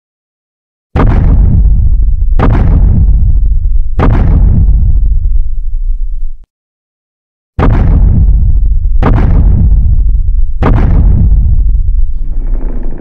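A giant creature's heavy footsteps boom and thud.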